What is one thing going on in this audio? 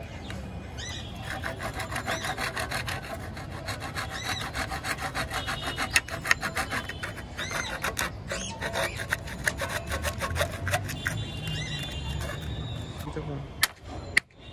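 A file rasps quickly and steadily along the teeth of a hand saw.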